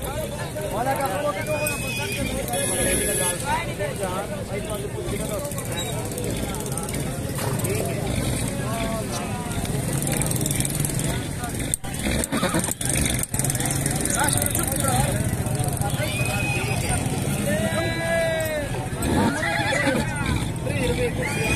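Many men talk at once in a busy outdoor crowd.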